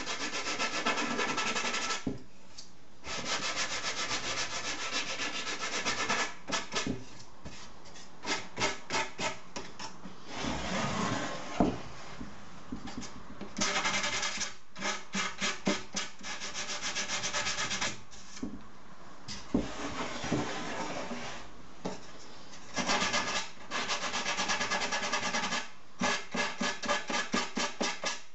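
A sanding block rubs back and forth along a wooden frame in quick strokes.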